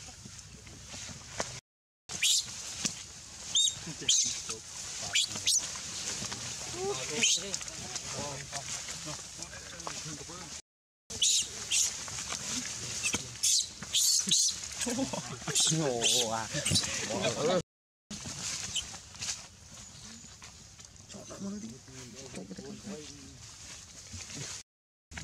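Leaves rustle as monkeys scramble through undergrowth.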